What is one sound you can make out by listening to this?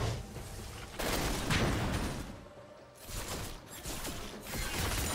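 Game spell effects whoosh and crackle in a fast battle.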